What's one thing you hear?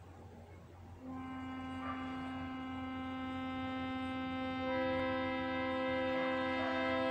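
A stringed zither is plucked, its notes ringing out and sustaining.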